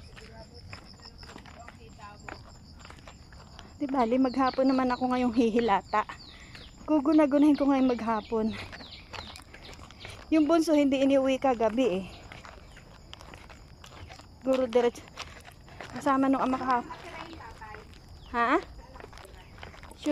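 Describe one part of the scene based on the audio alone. Footsteps fall on a stone path outdoors.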